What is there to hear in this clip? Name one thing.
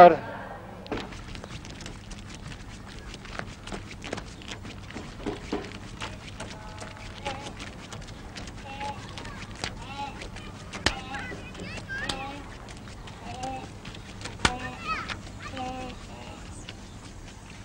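Footsteps of a boy walk along a dirt road outdoors.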